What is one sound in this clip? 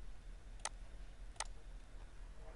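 A computer mouse clicks twice.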